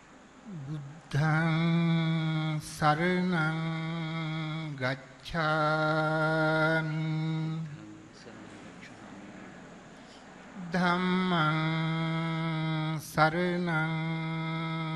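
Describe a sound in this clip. An elderly man chants in a steady, drawn-out voice through a microphone.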